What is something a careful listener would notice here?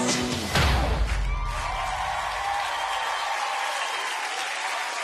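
Upbeat pop music plays loudly with a heavy beat.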